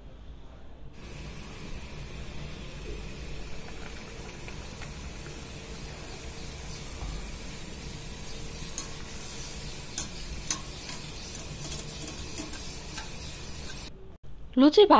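Dough sizzles and crackles as it deep-fries in hot oil.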